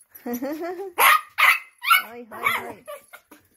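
Small dogs bark sharply.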